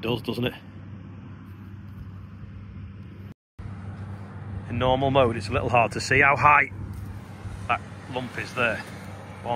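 Boots tread on soft, crumbly soil.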